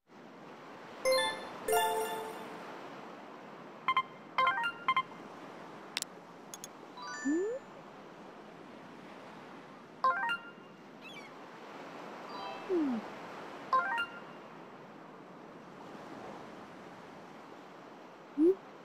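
Short electronic chimes and blips ring out now and then.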